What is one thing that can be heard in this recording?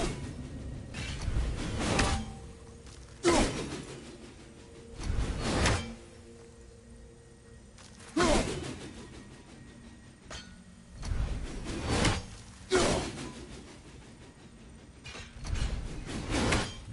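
A rushing whoosh swells as an axe flies back into a hand.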